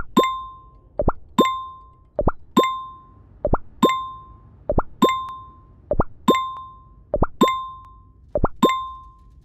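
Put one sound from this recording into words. A quick rising swoosh sounds before each chime.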